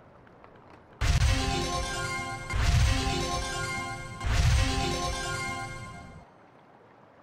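A bright magical chime rings out three times in quick bursts.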